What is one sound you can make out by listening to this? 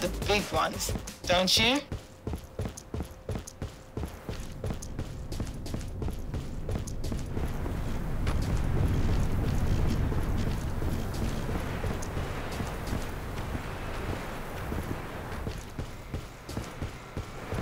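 Footsteps thud quickly on a hard floor.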